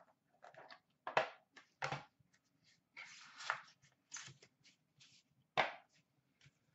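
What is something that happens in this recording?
A lid clicks and scrapes off a small metal tin.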